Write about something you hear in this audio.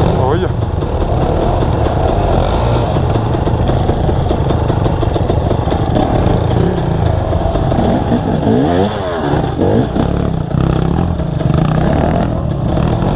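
A two-stroke enduro dirt bike revs while climbing a dirt trail.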